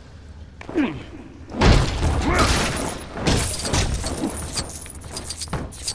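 Small plastic pieces clatter and scatter across a hard floor.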